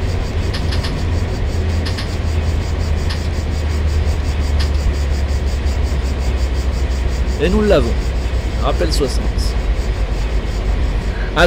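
A train's motor hums with a low, steady rumble.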